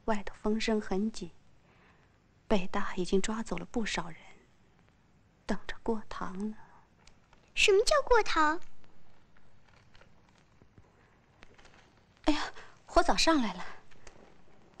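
A young woman speaks anxiously, close by.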